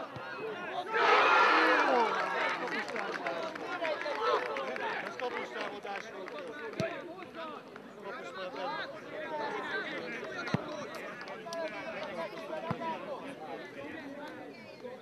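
A crowd of spectators cheers loudly outdoors.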